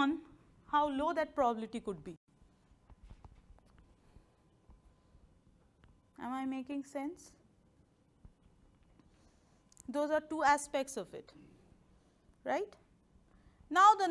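A woman speaks calmly through a clip-on microphone, pausing between phrases.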